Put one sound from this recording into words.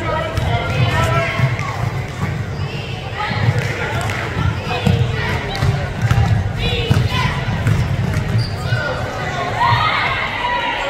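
Spectators and players call out in an echoing gym.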